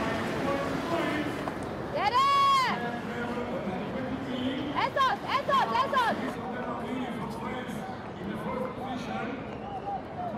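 A crowd cheers in the open air.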